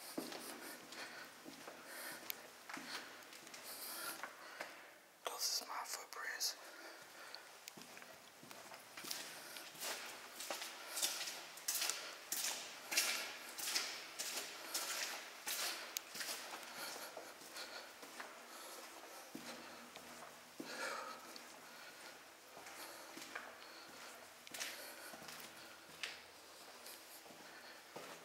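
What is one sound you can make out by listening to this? Footsteps scuff and splash slowly along a wet floor in an echoing passage.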